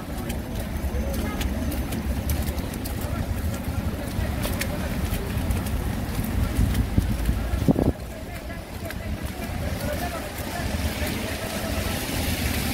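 Light rain patters on an umbrella overhead.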